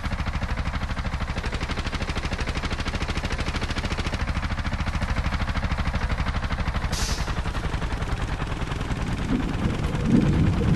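A small motor engine putters steadily with a rapid chugging beat.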